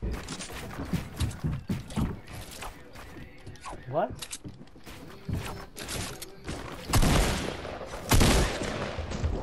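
Wooden walls are placed with quick clunks.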